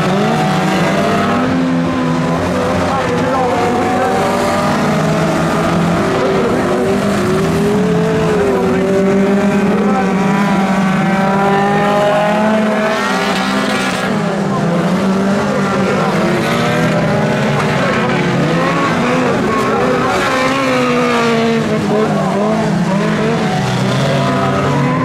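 Race car engines roar and rev as cars speed past.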